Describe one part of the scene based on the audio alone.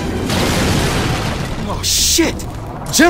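An explosion bursts with a loud roar and debris clatters down.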